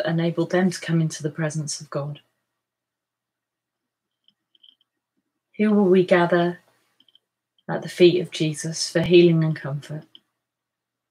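A woman speaks calmly and close to a microphone, pausing between phrases.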